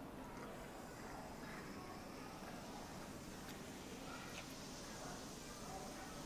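Fizzy soda bubbles and hisses as it is poured.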